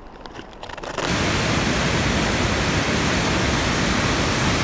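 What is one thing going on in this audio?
A waterfall roars and rushes steadily.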